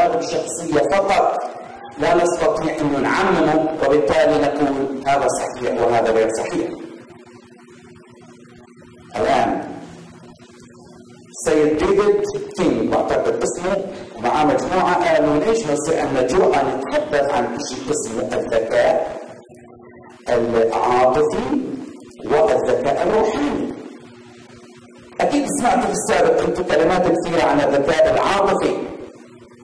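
A middle-aged man speaks with animation into a microphone, with pauses between phrases.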